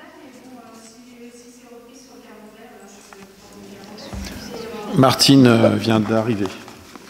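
A man speaks calmly over a microphone in a large hall.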